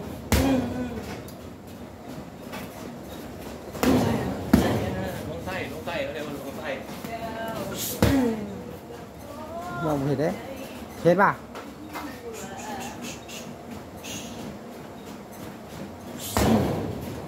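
Boxing gloves thud against a punching bag.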